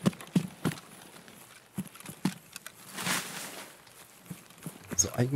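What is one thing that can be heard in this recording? Footsteps rustle through grass at a steady walking pace.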